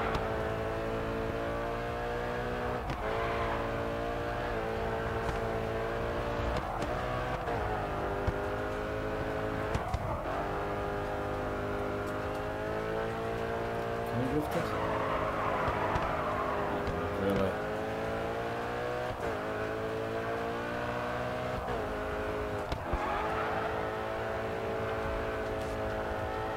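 A car engine roars at high revs, dropping in pitch at each gear change.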